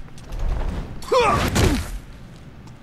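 A man groans sharply in a struggle.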